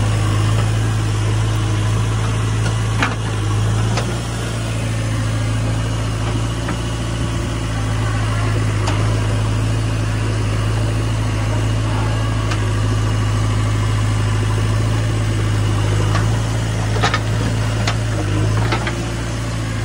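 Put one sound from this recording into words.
Clumps of soil thud and clatter into a metal truck bed.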